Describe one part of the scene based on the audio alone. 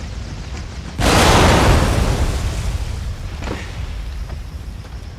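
An explosion bursts with a loud roar and slowly fades.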